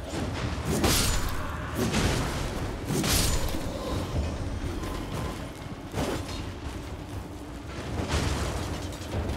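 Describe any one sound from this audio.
Weapons clash and strike in sudden bursts.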